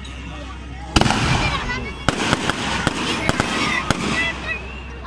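Sparks from fireworks crackle.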